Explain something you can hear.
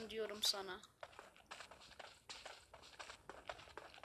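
Footsteps tread quickly over the ground.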